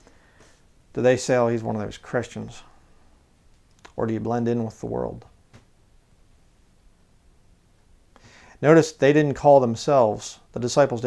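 A man speaks calmly and close through a microphone, in short phrases with pauses.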